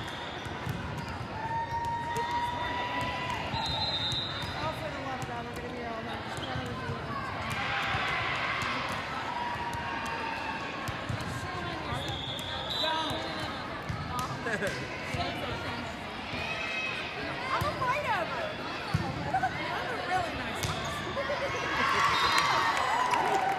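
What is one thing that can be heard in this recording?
A crowd of girls and spectators chatter and call out in a large echoing hall.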